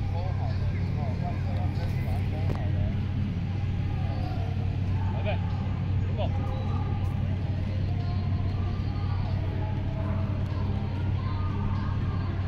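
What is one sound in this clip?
A football is kicked softly across grass.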